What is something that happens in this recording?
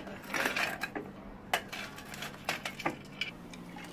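Ice cubes clink and rattle in a glass.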